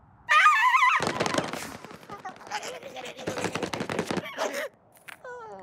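A small cartoon creature scrambles up a rock wall with quick pattering steps.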